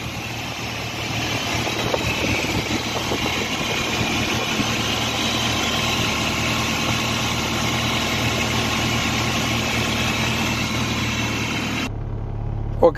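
An engine runs loudly close by with a busy clatter.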